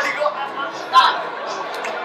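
A young man shouts excitedly.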